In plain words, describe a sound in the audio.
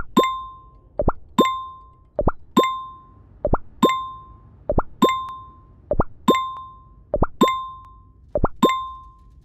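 A bright game chime rings as game pieces move, again and again at an even pace.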